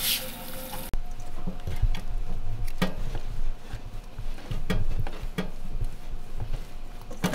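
Hands squish and knead something in a metal bowl.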